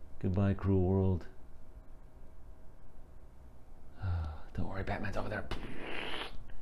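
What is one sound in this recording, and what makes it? A man speaks close up.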